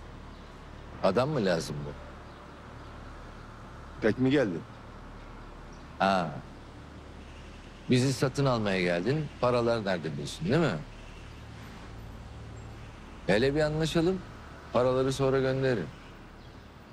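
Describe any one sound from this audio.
A middle-aged man speaks calmly and firmly, close by.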